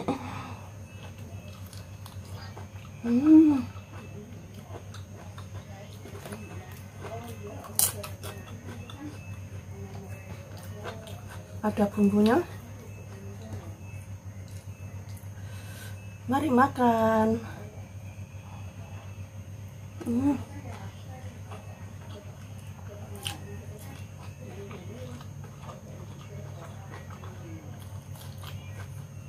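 A woman chews food close up with soft, wet smacking sounds.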